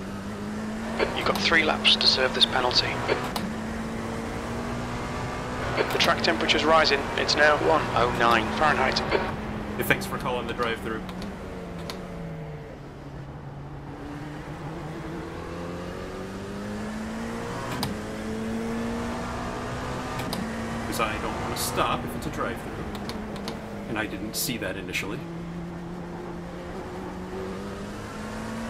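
A racing car engine hums and rises and falls in pitch as it changes gear.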